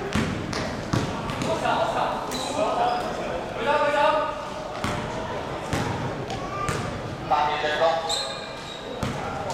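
A basketball bounces on a hard floor in a large echoing hall.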